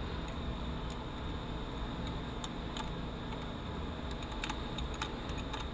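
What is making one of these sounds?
Metal parts click and clink softly.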